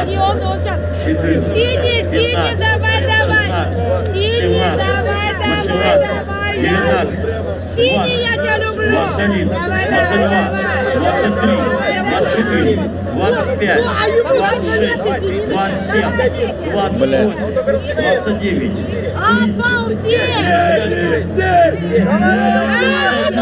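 A crowd of people outdoors cheers and shouts.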